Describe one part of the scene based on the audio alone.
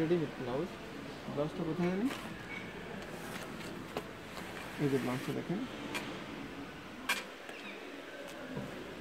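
Fabric rustles as it is handled and unfolded.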